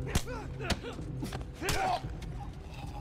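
A man grunts and groans in pain.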